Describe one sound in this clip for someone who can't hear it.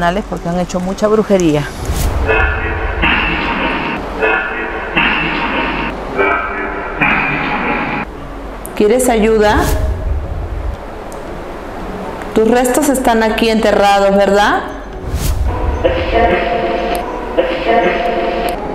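A small electronic device crackles and chops rapidly through bursts of radio static and garbled voices.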